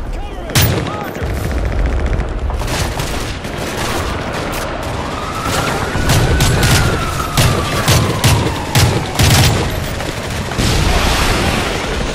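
Gunfire cracks in rapid bursts nearby.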